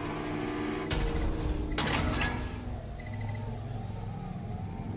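A large machine whirs as it spins.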